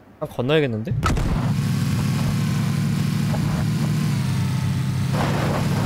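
A car engine starts and runs with a steady hum.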